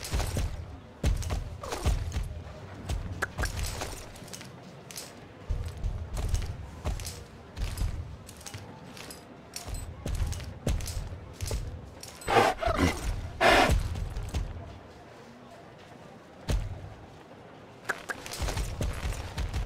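Horse hooves clop steadily on stone and grass.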